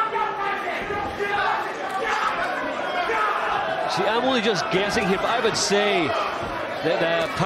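A crowd murmurs and calls out in a large hall.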